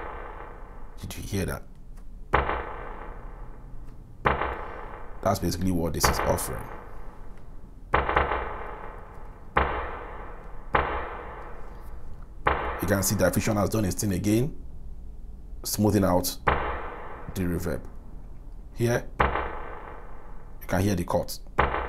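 Short electronic notes ring out from a drum machine, each trailing off in a long echoing tail.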